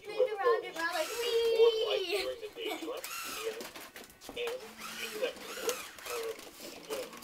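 A toy robot talks in an electronic voice.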